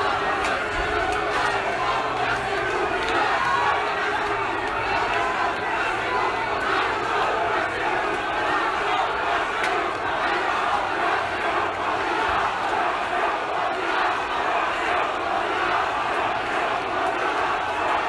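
A large crowd shouts and chants loudly in the street below.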